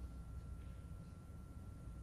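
A snooker ball is set down softly on the table cloth.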